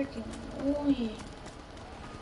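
A young woman speaks briefly and close to a microphone.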